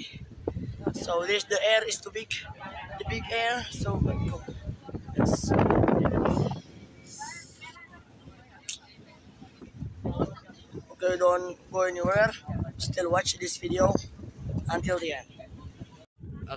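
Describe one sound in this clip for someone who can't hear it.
A boy talks with animation close to the microphone.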